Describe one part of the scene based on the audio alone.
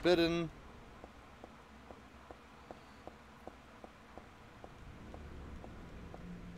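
Footsteps tap steadily on hard stairs.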